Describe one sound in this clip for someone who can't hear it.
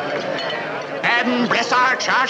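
A man speaks loudly close by over the crowd.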